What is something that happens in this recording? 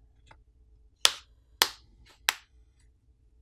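A plastic pry tool clicks and snaps against the edge of a phone.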